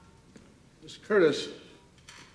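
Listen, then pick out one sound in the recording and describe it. An elderly man speaks up briefly.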